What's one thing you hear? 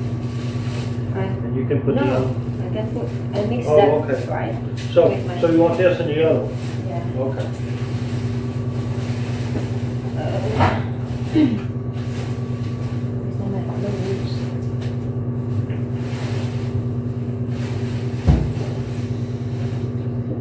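Clothes rustle as a woman pulls them from a dryer drum.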